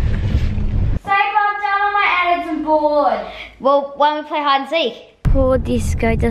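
A teenage girl talks to herself close by.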